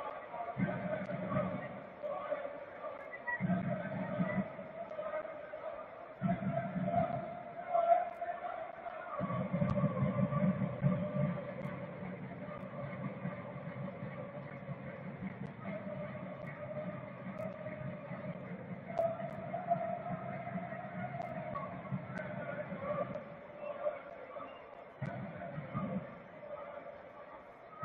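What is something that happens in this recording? A stadium crowd chants and sings in a large open space.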